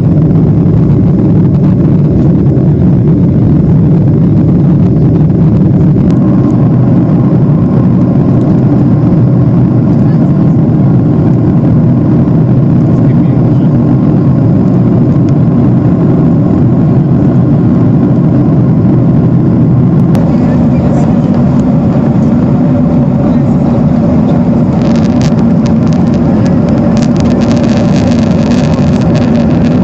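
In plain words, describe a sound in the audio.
Jet engines and airflow roar inside an airliner cabin in cruise.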